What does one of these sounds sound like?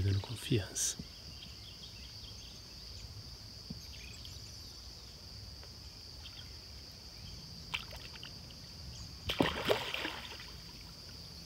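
A swimmer splashes in water.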